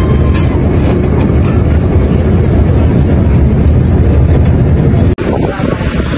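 Wind roars loudly past the open window of a moving bus.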